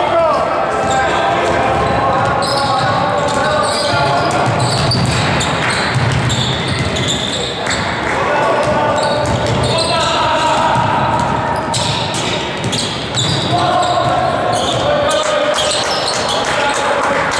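Basketball shoes squeak on a wooden court in a large echoing hall.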